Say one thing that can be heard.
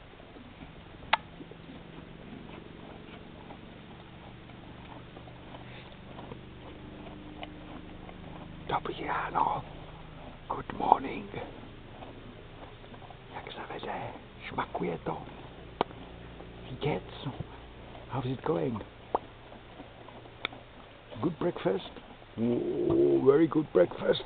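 A horse munches and crunches hay close by.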